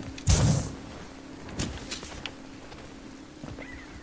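Footsteps thud on stone.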